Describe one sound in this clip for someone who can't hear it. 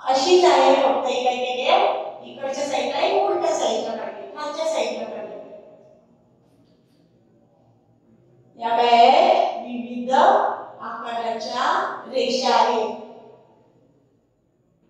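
A young woman speaks clearly and calmly into a close microphone.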